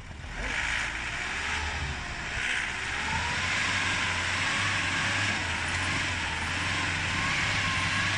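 An SUV engine labours under load in snow.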